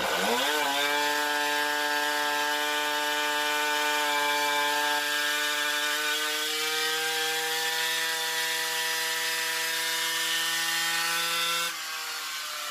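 A small two-stroke engine revs up sharply and holds a high, buzzing whine.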